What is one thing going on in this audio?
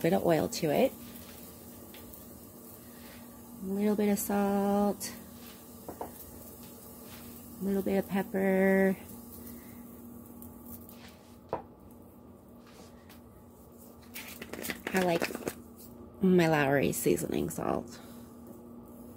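Chicken pieces sizzle softly in a frying pan.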